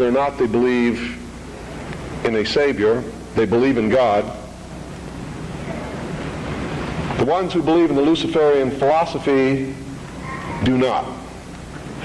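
A middle-aged man speaks emphatically through a microphone in a large hall, with pauses between phrases.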